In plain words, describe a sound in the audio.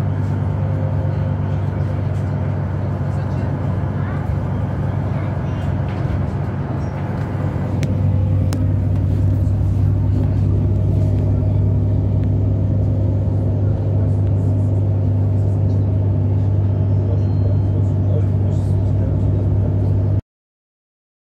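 A bus engine drones steadily as the bus drives along.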